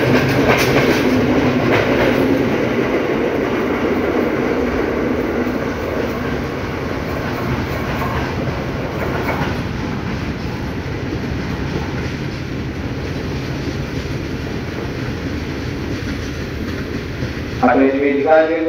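A train rumbles and clatters away along the tracks, slowly fading.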